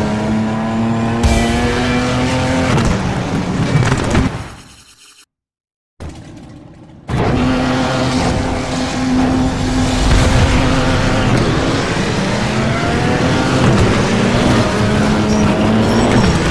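A car engine roars at high revs and shifts gears as it races.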